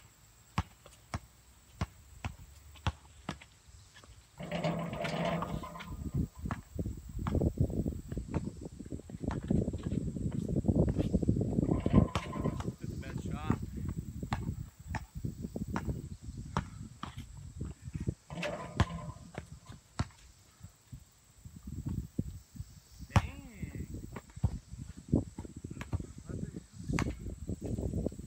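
A basketball bounces on a hard court, over and over.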